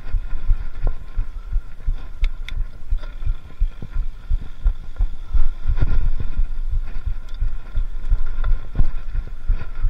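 A bicycle frame clatters and knocks over bumps.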